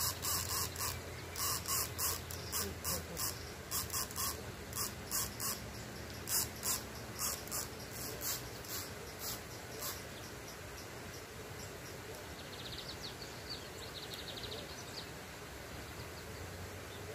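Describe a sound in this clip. Water splashes steadily from a fountain across a pond.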